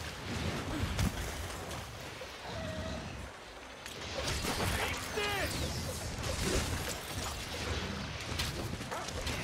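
A blade slashes and strikes with sharp impacts.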